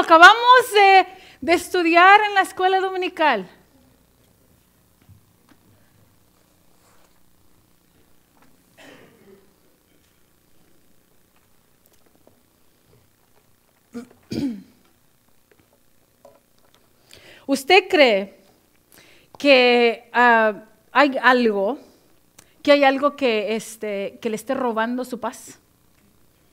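A young woman sings into a microphone in a large echoing hall, pausing between phrases.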